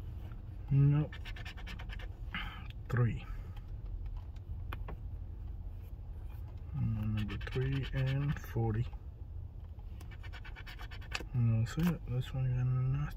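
A coin scratches at a scratch-off card.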